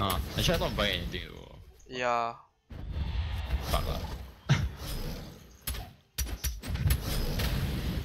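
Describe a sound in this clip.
Game fighters clash with quick hits and whooshing attacks.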